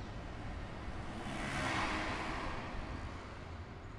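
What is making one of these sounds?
Book pages rustle softly as they are turned.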